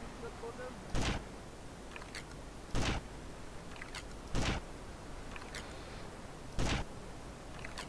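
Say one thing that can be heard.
Rifle shots ring out one at a time, with pauses between them.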